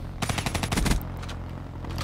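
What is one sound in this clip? Rapid gunfire rattles in a video game.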